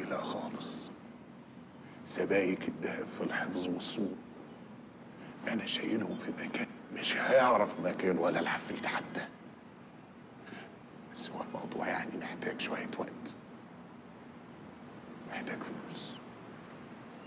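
A middle-aged man speaks close by with animation, in bursts.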